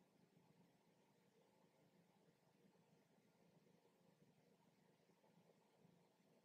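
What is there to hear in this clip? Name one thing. A young woman speaks quietly and calmly close by.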